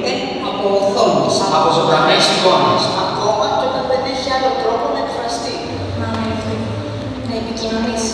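A woman speaks through loudspeakers in a large hall.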